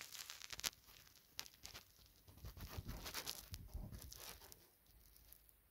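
A dog shuffles about on a sofa cushion.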